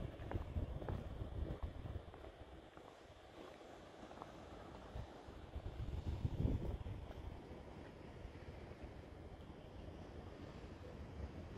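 Wind buffets outdoors in low gusts.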